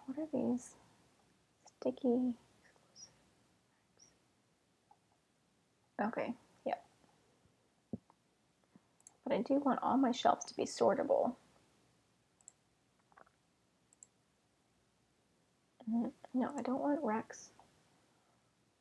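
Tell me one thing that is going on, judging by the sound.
A young woman talks calmly and close to a microphone, in short bursts.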